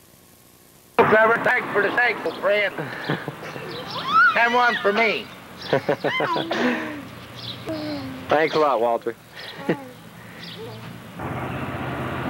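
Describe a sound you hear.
An elderly man talks calmly outdoors, close by.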